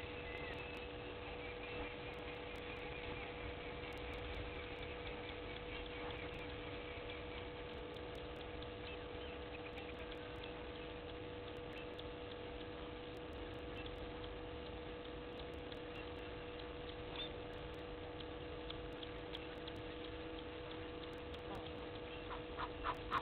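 A duck preens its feathers with soft rustling.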